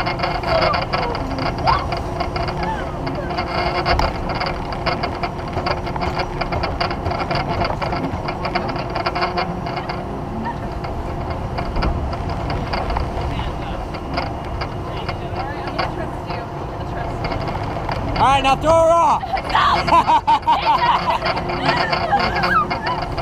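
A mechanical bull's motor whirs and rumbles steadily.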